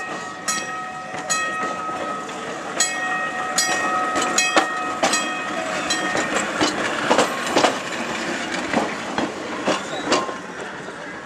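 Steel wheels clack over rail joints.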